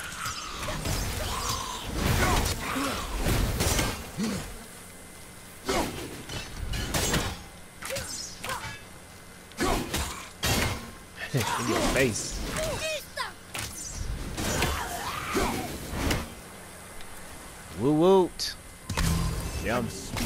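An axe strikes and slashes with heavy impacts.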